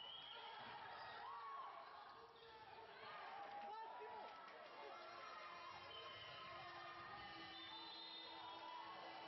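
A small crowd murmurs in the stands.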